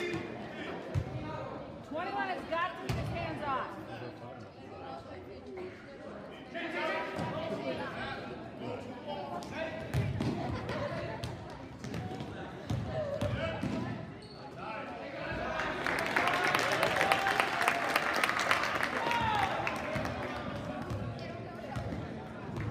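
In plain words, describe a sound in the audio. A basketball bounces on a hard floor in a large echoing gym.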